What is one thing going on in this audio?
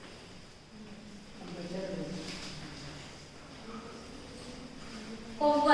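A woman reads aloud calmly, nearby.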